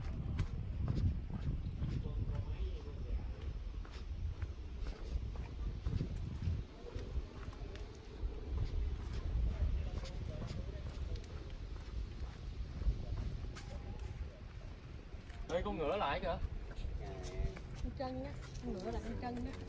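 A zebra's hooves thud softly on dirt as it walks.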